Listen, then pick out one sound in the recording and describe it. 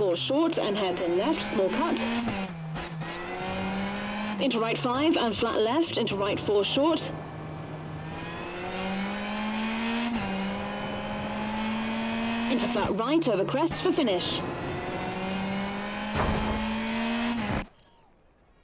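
A rally car engine revs hard, rising and falling as it shifts gears.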